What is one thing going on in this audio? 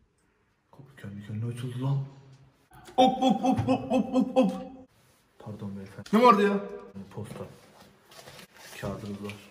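A bearded man speaks with animation nearby.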